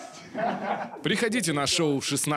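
A man laughs loudly nearby.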